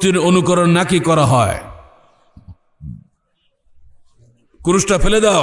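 An elderly man chants loudly into a microphone, heard through a loudspeaker.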